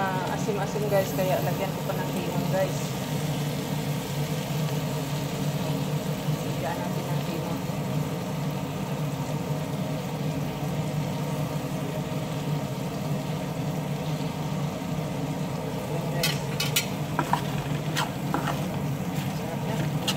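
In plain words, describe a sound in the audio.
Shrimp sizzle steadily in a hot pan.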